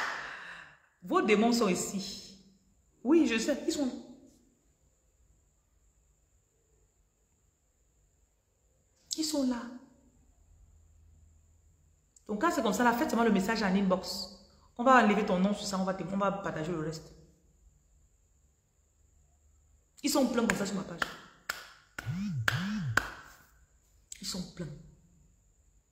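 A woman talks with animation close by, in bursts with pauses.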